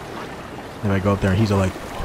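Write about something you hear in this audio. Water splashes softly as someone swims.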